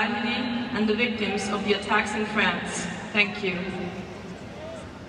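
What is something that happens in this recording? Men in a crowd talk loudly close by.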